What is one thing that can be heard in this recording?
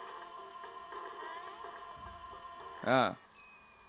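Bright electronic game music plays.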